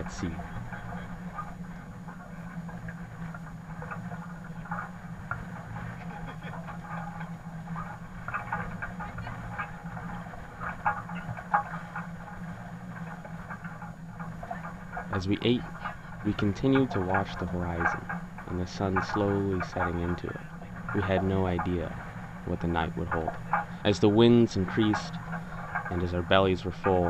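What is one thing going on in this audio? Water rushes past a boat's hull.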